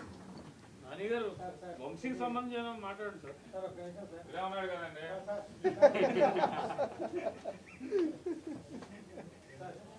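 Several men talk loudly over one another in a room.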